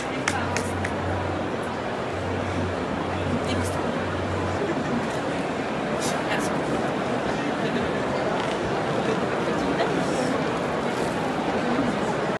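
Women chat quietly among a murmuring crowd.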